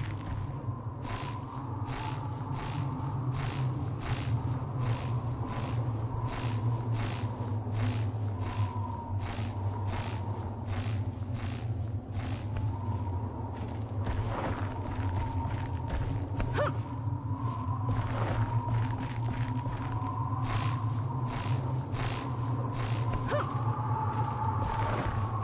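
Hands and feet rustle through leafy vines in a steady climbing rhythm.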